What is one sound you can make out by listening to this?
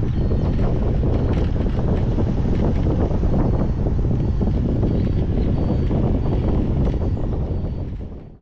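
Strong wind rushes and buffets against the microphone high in the open air.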